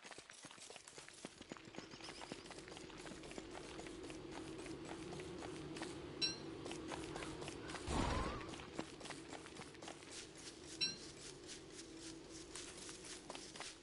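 Footsteps patter quickly along a path.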